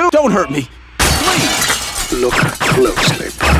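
A large pane of window glass shatters.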